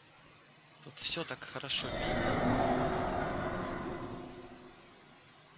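A magic spell swells with a shimmering whoosh.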